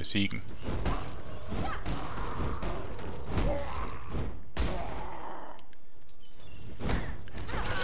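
Fireballs whoosh and burst in a video game.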